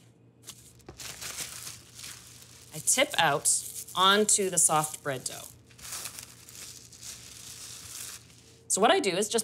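Plastic wrap crinkles under hands.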